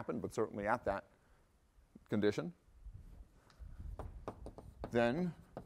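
A middle-aged man speaks calmly and clearly, lecturing.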